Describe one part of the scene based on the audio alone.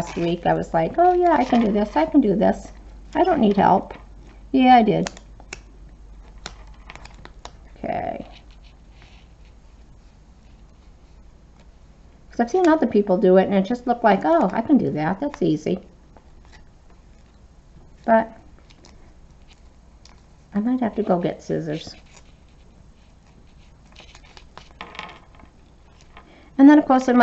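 Paper and plastic sheets rustle softly as they are handled.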